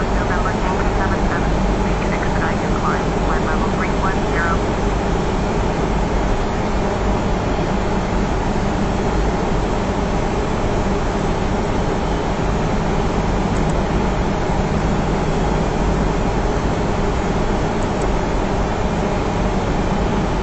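Jet engines drone steadily inside an aircraft cockpit.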